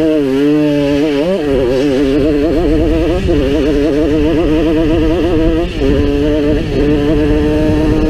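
A dirt bike engine revs loudly and rises and falls in pitch.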